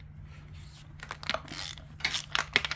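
A ratchet wrench clicks in quick bursts.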